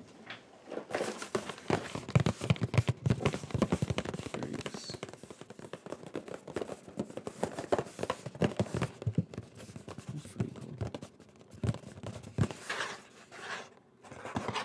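A cardboard package rustles and crinkles close to a microphone.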